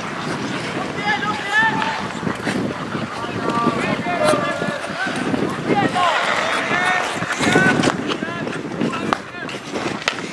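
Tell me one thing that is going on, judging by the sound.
Men shout to each other across an open ice rink.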